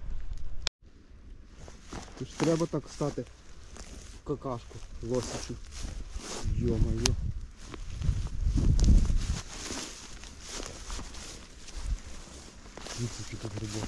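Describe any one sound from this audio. Footsteps rustle and crunch through low shrubs.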